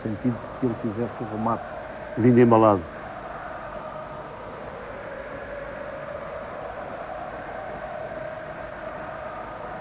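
A large crowd murmurs steadily in the distance, outdoors.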